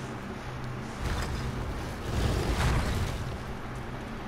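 Heavy wooden doors grind and rumble as they swing open.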